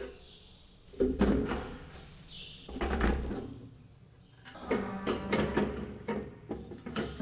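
A metal tool knocks and scrapes against metal bars.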